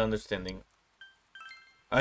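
A short game menu chime rings out twice.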